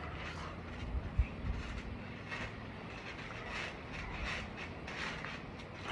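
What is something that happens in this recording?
A boy's feet thump on a trampoline.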